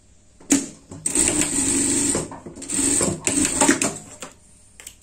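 An industrial sewing machine stitches through fabric in short bursts.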